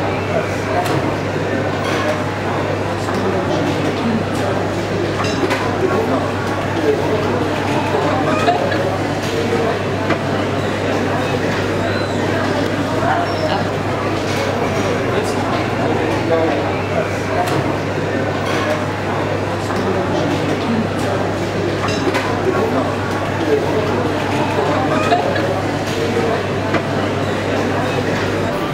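Sausages sizzle steadily on a hot griddle.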